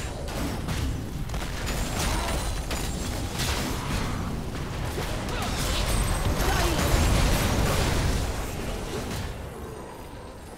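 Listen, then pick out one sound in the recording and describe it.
Spell blasts and weapon clashes ring out in a fast game fight.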